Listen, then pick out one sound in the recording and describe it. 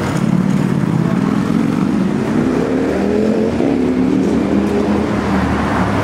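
A car drives past and speeds up.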